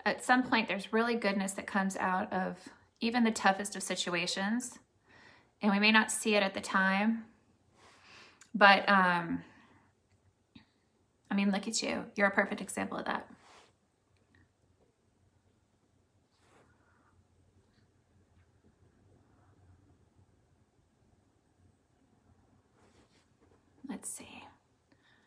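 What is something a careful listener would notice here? A middle-aged woman talks calmly and close up, in short bursts with pauses.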